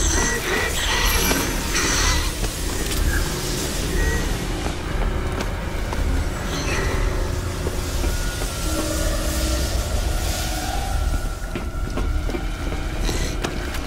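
Boots thud on a hard floor as a man runs.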